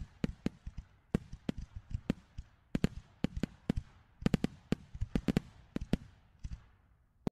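Fireworks burst with sharp, rapid bangs and crackles nearby.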